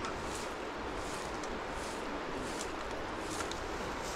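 A broom sweeps across a rug in short brushing strokes.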